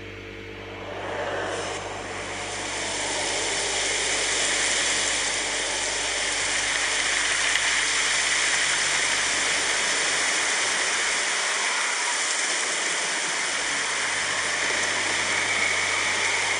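Steady rain hisses in a video game through a television speaker.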